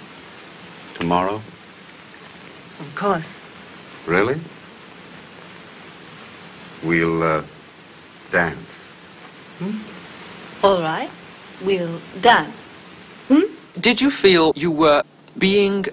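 A man speaks softly and warmly, close by.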